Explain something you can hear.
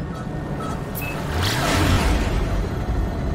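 A loud whoosh sweeps past as the spaceship jumps to high speed.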